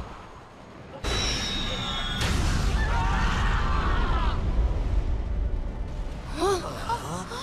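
A loud explosion booms and rumbles deeply.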